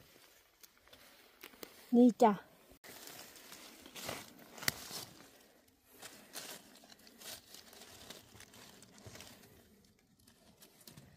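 Dry leaves rustle and crackle under hands.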